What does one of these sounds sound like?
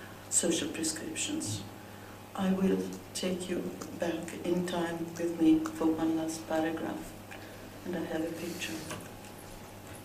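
An elderly woman speaks into a microphone with animation.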